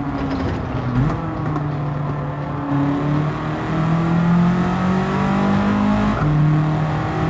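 A gearbox shifts with a short drop in engine pitch.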